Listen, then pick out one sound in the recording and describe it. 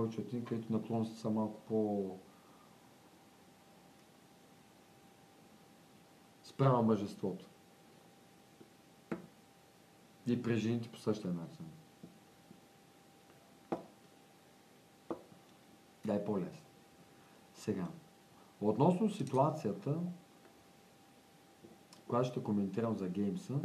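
A man speaks calmly in short bursts with pauses, close to the microphone.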